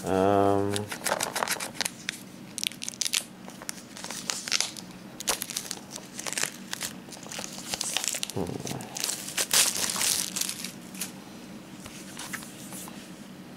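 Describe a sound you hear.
Plastic disc cases clatter and rustle as hands handle them.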